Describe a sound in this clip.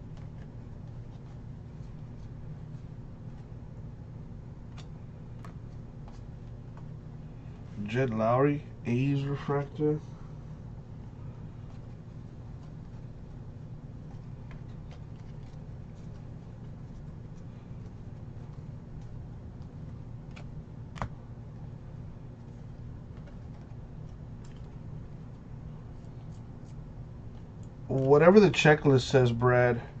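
Trading cards softly rustle and flick as hands sort through them.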